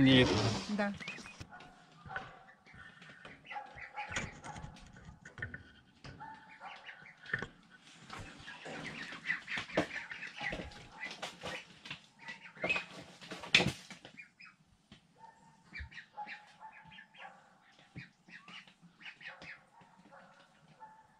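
Many chicks peep and cheep nearby.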